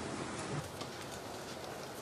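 A chess piece is set down on a wooden board.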